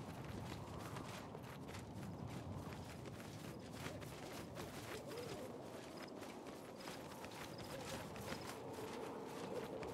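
Footsteps crunch steadily over rocky ground.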